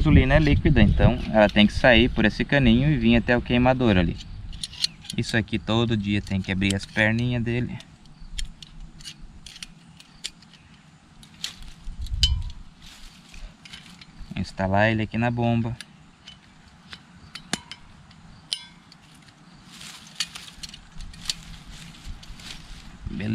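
Small metal parts click and clink.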